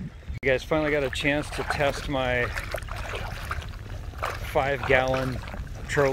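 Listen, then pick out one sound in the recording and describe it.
Water laps and splashes gently close by.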